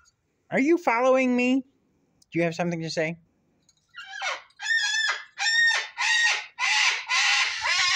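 A cockatoo squawks and chatters loudly up close in short bursts.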